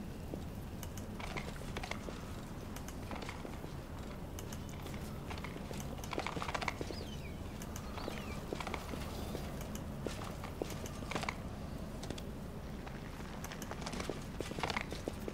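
Footsteps of several people tread along a stone path.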